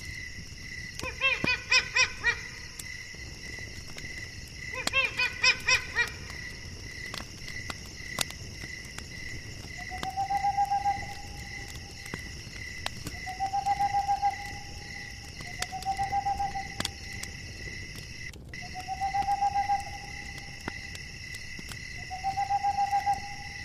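An owl hoots repeatedly.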